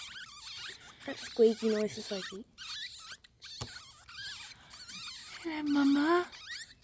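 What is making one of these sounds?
Newborn ferret kits squeak with high, thin cries throughout.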